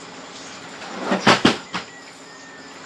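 Plastic items knock and clatter as they are handled nearby.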